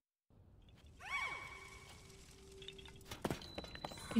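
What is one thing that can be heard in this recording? A bright magical chime rings out and fades.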